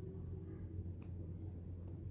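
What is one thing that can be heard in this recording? A glue gun trigger clicks softly.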